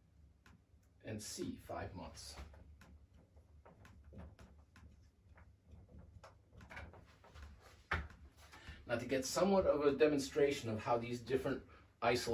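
A man speaks calmly, like a teacher explaining.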